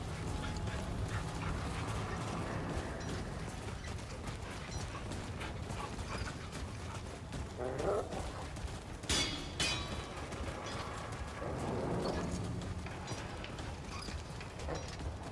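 Footsteps crunch quickly on gravel.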